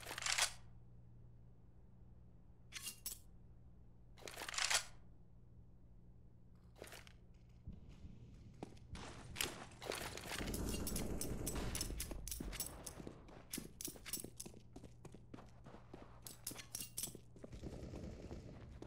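A knife swishes and clinks as it is flipped in a hand.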